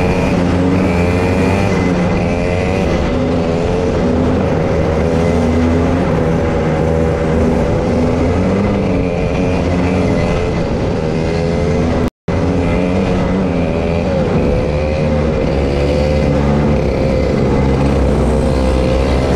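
A kart engine buzzes loudly close by, its pitch rising and falling as it speeds up and slows down.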